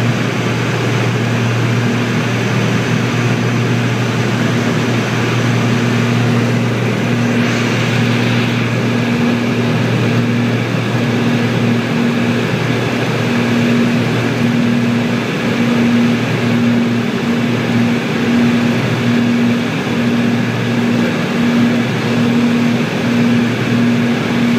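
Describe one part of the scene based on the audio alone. A small plane's engine drones steadily close by.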